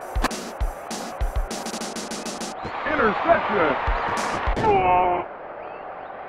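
Retro video game sound effects clash and bleep during a play.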